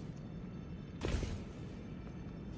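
A sharp crackling burst strikes once.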